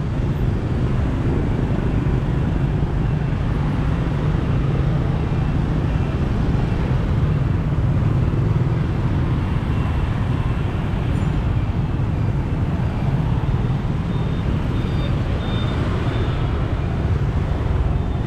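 Motorbike engines hum and buzz steadily as traffic streams past.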